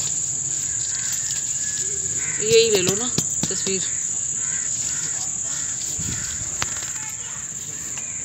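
Hands scrape and pat loose soil.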